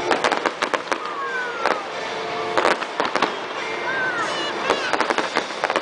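Fireworks whistle as they shoot upward.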